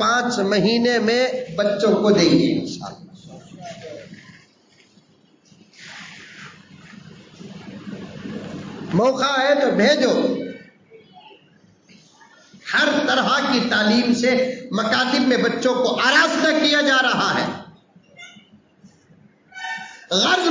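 A middle-aged man speaks with animation into a microphone, heard through a loudspeaker with pauses between phrases.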